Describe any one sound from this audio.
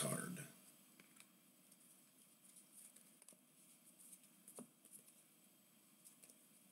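Trading cards rustle and flick softly in a person's hands.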